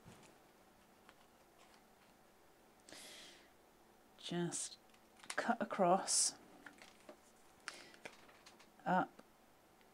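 Scissors snip through card.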